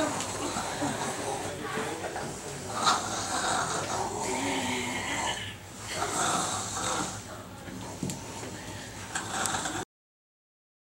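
Bodies rustle and thump against the floor.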